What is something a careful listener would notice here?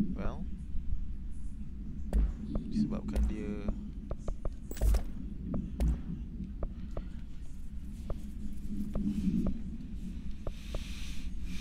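Short soft clicks sound again and again as menu selections change.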